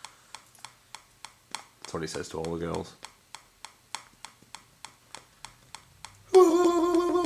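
A young man makes quick, rhythmic clicking sounds with his mouth close to a microphone.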